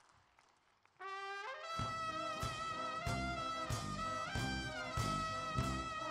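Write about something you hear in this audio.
A brass band plays a lively tune.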